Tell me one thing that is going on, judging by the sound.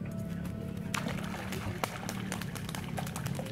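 Water splashes as a bird beats its wings on the surface.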